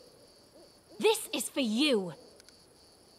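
A wolf snarls and howls.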